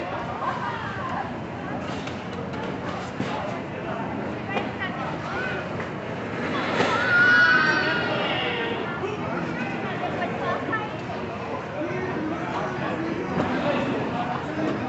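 Ice skate blades scrape and glide across ice.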